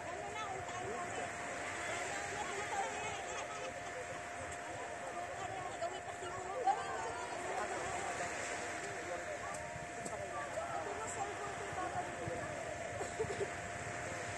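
Small waves lap gently on a sandy shore.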